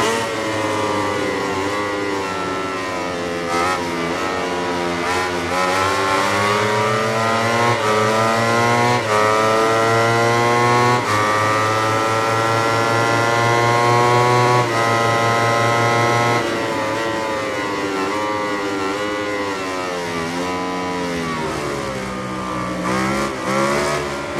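A motorcycle engine screams loudly, rising through the gears and dropping as it slows.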